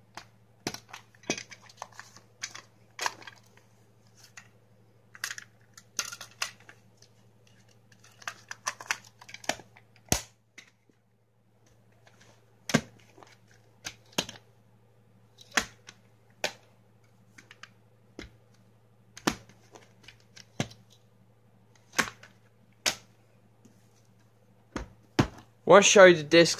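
Plastic disc cases click and clatter as hands handle them.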